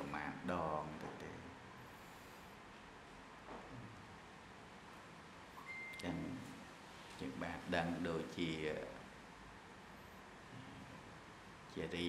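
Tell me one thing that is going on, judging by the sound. A man speaks slowly and calmly into a microphone, with pauses.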